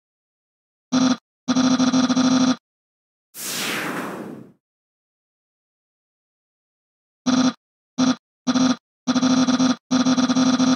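Rapid electronic blips chatter in quick bursts.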